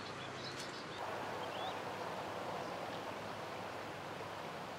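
Insects buzz in the grass.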